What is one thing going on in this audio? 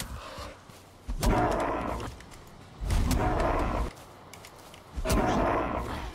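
A weapon swishes through the air.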